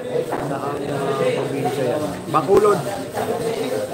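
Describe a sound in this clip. Pool balls click together on a table.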